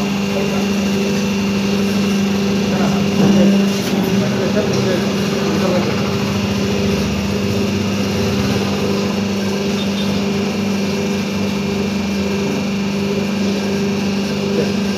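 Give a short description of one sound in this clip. A machine hums and whirs steadily close by.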